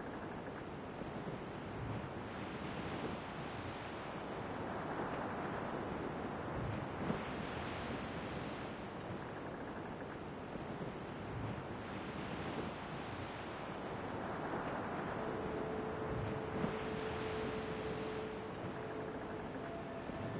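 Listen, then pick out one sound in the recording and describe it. Waves wash against the hull of a sailing ship moving through open sea.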